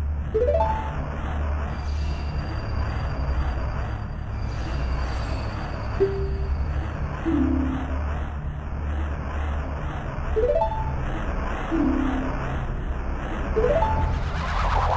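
A short rising chime sounds each time a message box opens or moves on.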